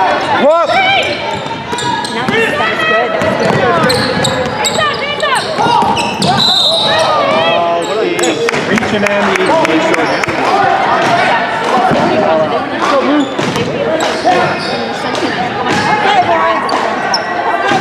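A crowd of spectators talks and cheers loudly in an echoing gym.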